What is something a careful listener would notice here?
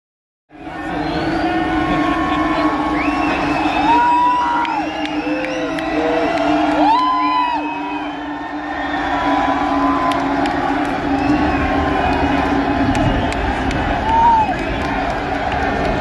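A large crowd whistles in a big echoing hall.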